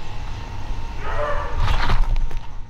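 A man calls out nearby, outdoors.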